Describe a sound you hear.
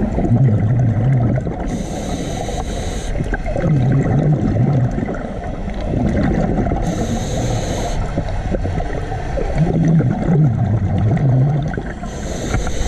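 A diver draws breath through a regulator with a low, hollow rasp.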